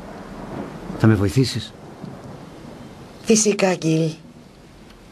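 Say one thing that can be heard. A middle-aged woman speaks gently, close by.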